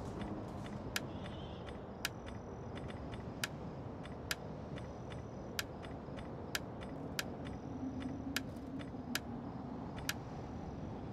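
Game interface clicks tick sharply at an uneven pace.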